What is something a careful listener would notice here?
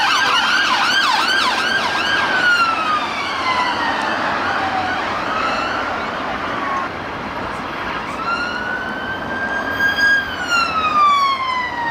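Car traffic hums and rumbles steadily nearby.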